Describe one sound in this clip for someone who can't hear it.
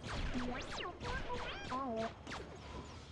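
A small robot beeps and warbles.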